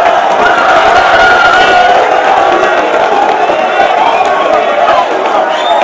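Men shout excitedly close by.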